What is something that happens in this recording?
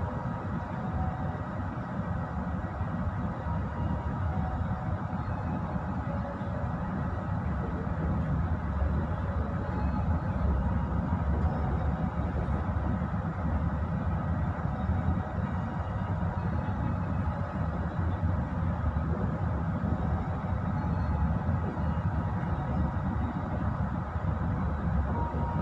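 A train rumbles steadily along the rails, heard from inside a carriage.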